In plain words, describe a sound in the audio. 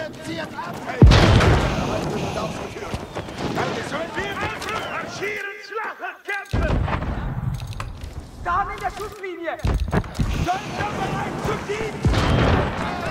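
Cannons fire with loud, heavy booms.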